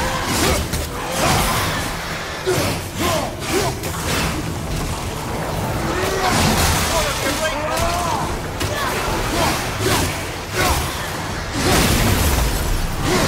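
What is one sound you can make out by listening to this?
Blows and clashing weapons strike hard in a fast fight.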